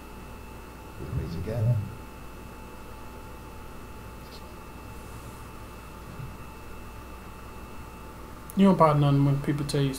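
A man speaks in a low, gravelly voice through a loudspeaker.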